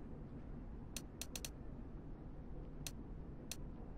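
Menu selections click sharply a few times.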